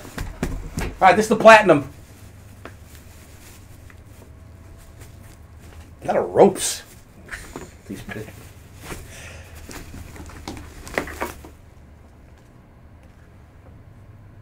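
A fabric bag rustles as hands handle it.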